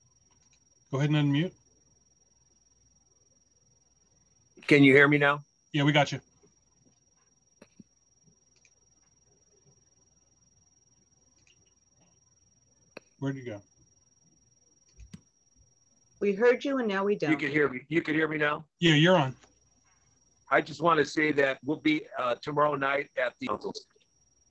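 A man speaks in short bursts, heard through an online call.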